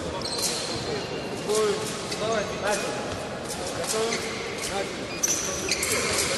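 Shoes squeak sharply on the hard floor.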